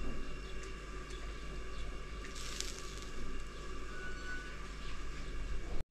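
Greens drop into a pot of water with a soft splash.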